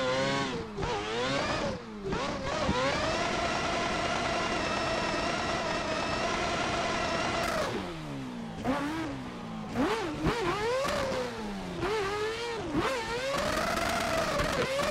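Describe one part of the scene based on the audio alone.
A racing car engine revs hard, rising and falling in pitch.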